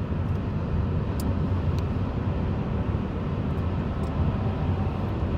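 Road noise rumbles inside a car moving along a highway.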